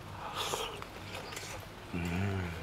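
A man slurps noodles loudly up close.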